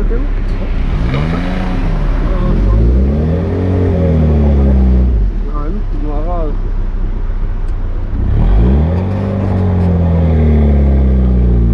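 A car engine revs up and down sharply between gear changes.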